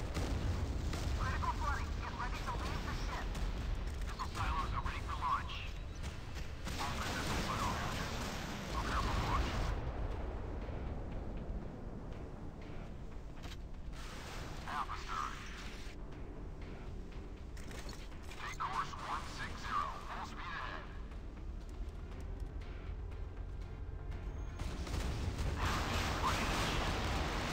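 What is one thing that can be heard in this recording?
Naval guns fire in rapid booming volleys.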